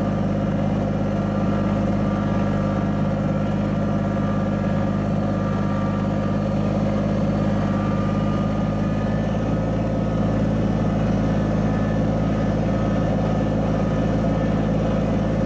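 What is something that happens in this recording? A tractor's diesel engine rumbles steadily up close.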